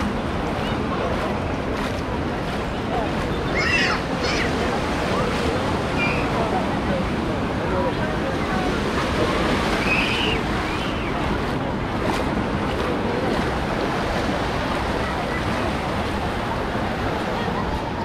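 A crowd of beachgoers chatters and calls out all around, outdoors.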